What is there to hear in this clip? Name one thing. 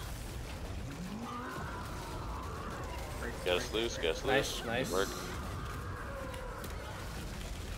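Magic spells burst and crackle in a game.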